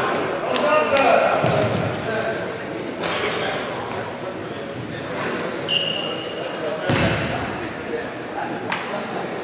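A ball thuds as it is kicked.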